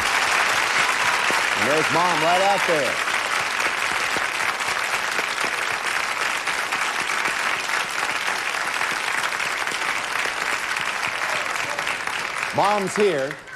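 An audience applauds loudly.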